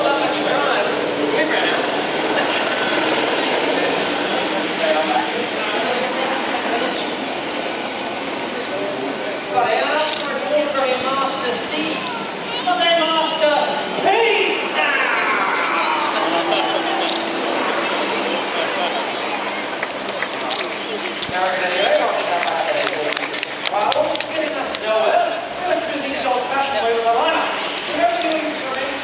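A man speaks with animation over a loudspeaker outdoors.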